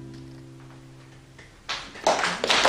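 A guitar plays softly, notes ringing.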